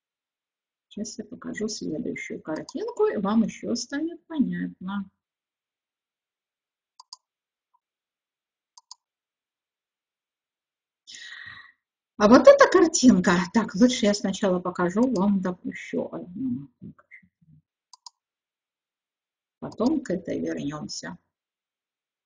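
An elderly woman speaks calmly into a close microphone, with pauses.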